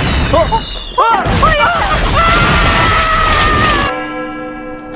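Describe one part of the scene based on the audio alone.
A huge explosion booms.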